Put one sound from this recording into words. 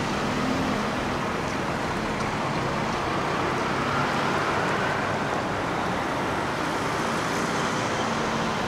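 Cars drive past on a street, their engines and tyres humming steadily.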